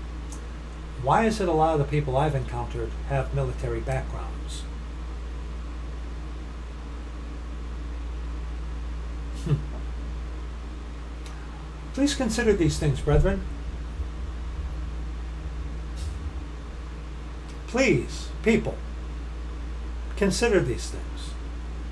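A middle-aged man speaks calmly into a nearby microphone, in short bursts with pauses.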